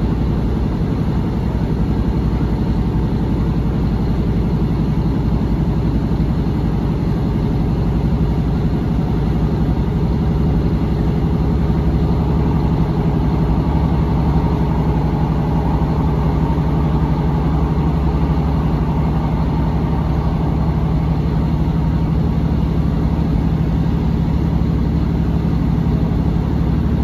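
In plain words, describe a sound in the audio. Wheels clatter rhythmically over the rails.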